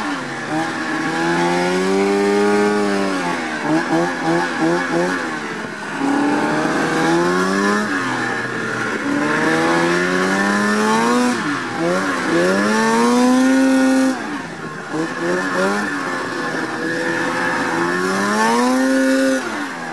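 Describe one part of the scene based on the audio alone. A two-stroke snowmobile engine revs up and down.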